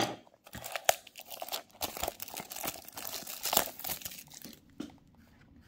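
Plastic wrapping crinkles and rustles between fingers.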